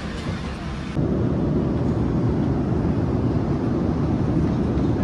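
A steady low drone of jet engines fills an aircraft cabin.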